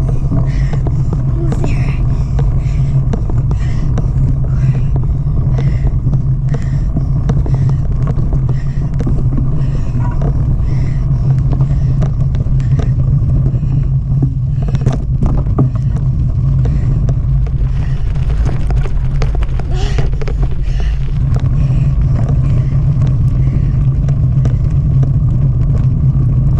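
Bicycle tyres roll and rattle over bumpy grass and dirt.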